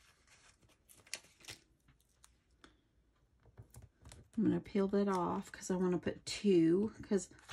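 Stiff paper rustles and taps softly.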